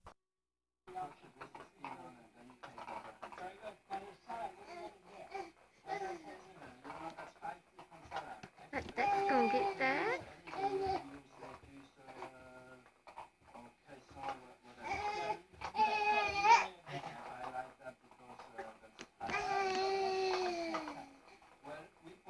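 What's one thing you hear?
A man talks to a baby in a playful, sing-song voice close by.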